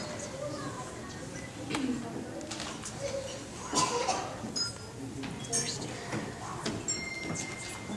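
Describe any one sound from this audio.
A woman talks to children nearby.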